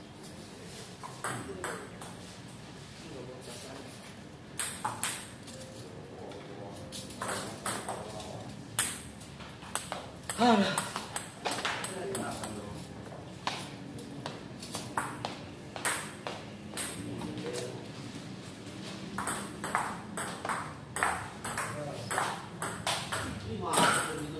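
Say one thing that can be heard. A ping-pong ball clicks sharply back and forth on paddles and a table.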